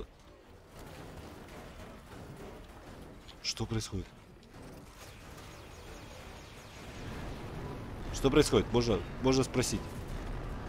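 A low explosion rumbles.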